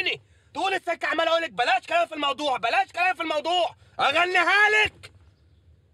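A young woman speaks quickly and with animation close by.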